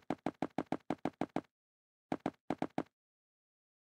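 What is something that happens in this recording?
Blocks are placed one after another with quick, soft thuds.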